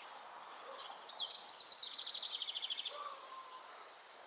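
A bird chirps outdoors.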